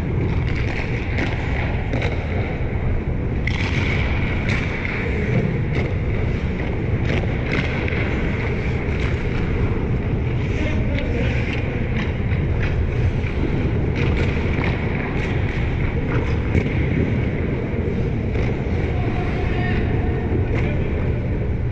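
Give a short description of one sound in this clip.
Hockey pucks clack against sticks and the boards.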